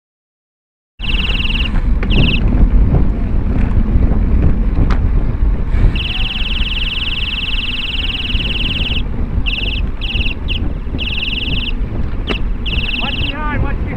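Wind rumbles loudly past a moving bicycle.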